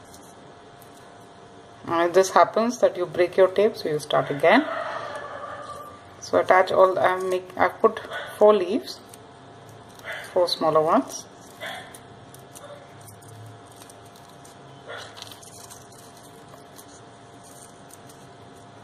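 Paper strips rustle and crinkle softly between fingers.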